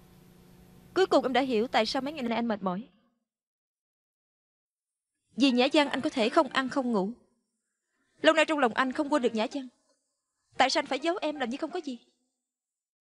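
A young woman speaks calmly in short phrases, close by.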